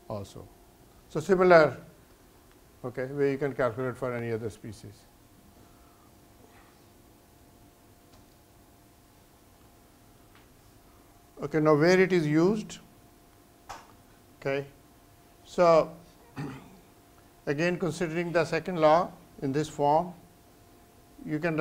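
An elderly man lectures calmly through a microphone in a room, with long pauses.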